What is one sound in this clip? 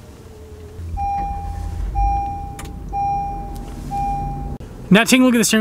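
A car's warning chime beeps repeatedly in an even rhythm.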